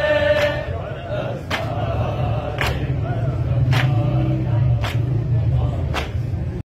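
Men beat their chests in unison with steady, heavy thumps about once a second.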